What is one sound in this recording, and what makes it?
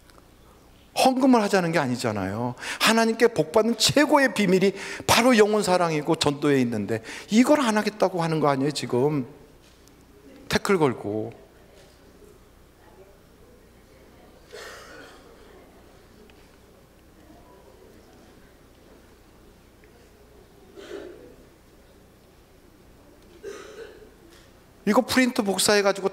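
A middle-aged man speaks with animation through a microphone and loudspeakers in a large hall.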